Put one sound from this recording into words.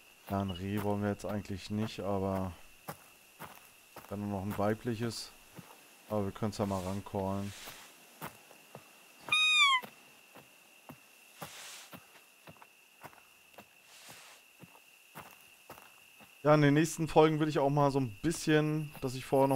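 Footsteps rustle through dry, leafy plants.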